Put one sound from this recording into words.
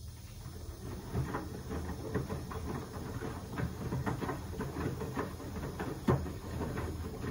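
Wet laundry sloshes and thumps inside a turning drum.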